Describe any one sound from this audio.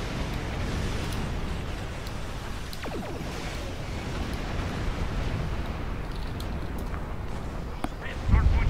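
Spaceship weapons fire and rumble in a game.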